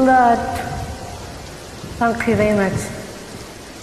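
A young woman sings into a phone microphone in short held notes.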